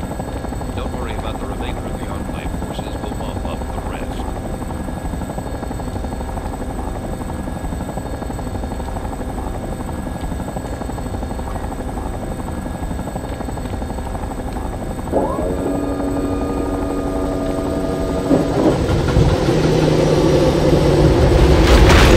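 An aircraft engine drones with a steady low rumble.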